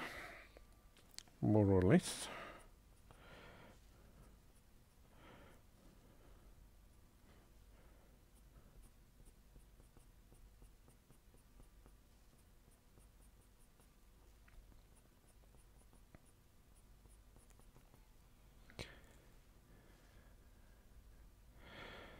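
A pencil scratches softly on paper in short strokes.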